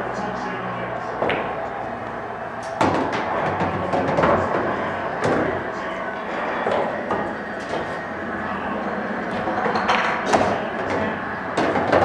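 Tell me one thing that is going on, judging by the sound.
A cue strikes a pool ball and balls clack together.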